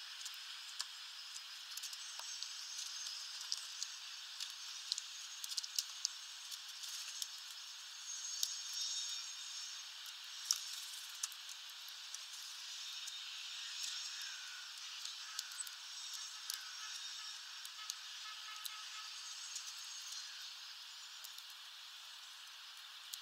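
Small birds peck and crack seeds with sharp little clicks.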